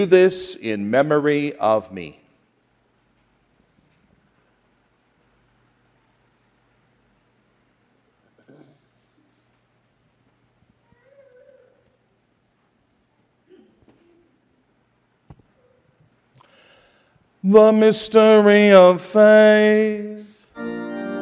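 A middle-aged man chants through a microphone in an echoing hall.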